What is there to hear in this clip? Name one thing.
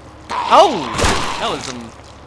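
A shotgun fires a single loud blast.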